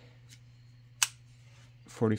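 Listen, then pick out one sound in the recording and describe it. A folding knife blade clicks open.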